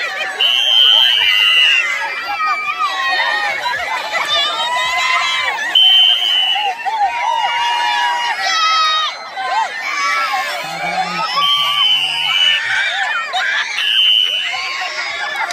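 Children scream in high voices with excitement.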